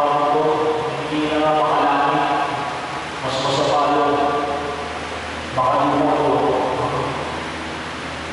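A middle-aged man sings through a microphone and loudspeakers in an echoing hall.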